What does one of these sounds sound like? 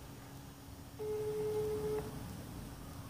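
A phone plays a steady electronic tone.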